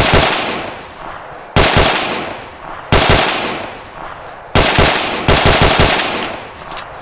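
A rifle fires loud single shots and short bursts close by, each followed by a ringing echo.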